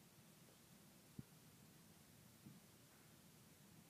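A cup is set down on a table with a soft knock.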